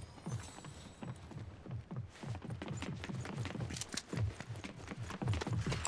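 Quick footsteps thud on a wooden floor.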